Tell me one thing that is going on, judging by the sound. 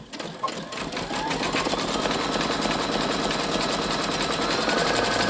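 A sewing machine hums and stitches rapidly.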